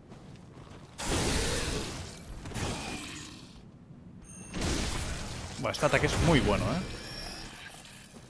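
A blade swings and slashes with heavy whooshes.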